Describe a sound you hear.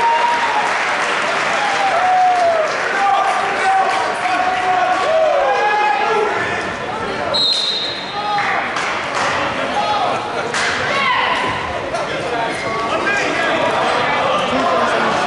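Sneakers squeak on the mat.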